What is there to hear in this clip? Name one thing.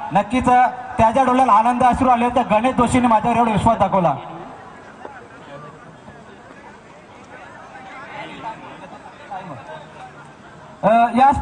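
A man announces loudly and with animation through a loudspeaker.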